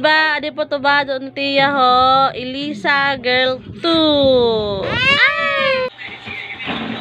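A toddler squeals and babbles loudly, close by.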